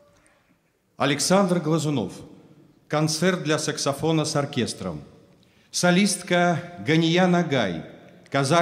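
A middle-aged man reads out calmly into a microphone in an echoing hall.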